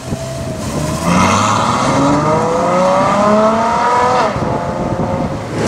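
A sports car engine revs loudly and roars as it accelerates past.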